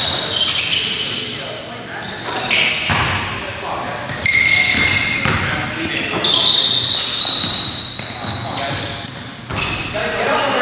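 Sneakers squeak sharply on a hard court floor in a large echoing hall.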